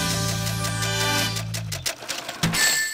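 Video game score counter ticks rapidly.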